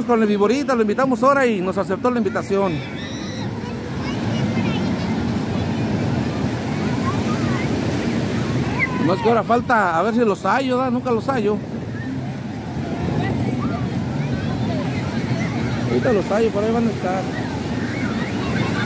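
A crowd of people chatters and calls out.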